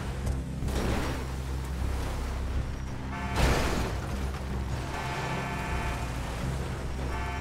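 Tyres churn through loose dirt.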